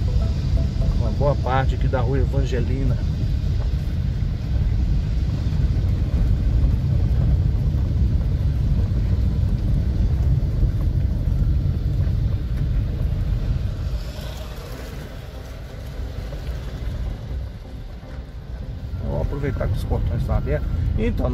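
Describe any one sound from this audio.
A car engine rumbles low from inside a moving car.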